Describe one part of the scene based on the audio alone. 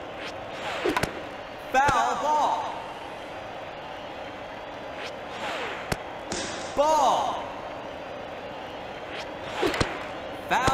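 A video game baseball bat cracks against a ball.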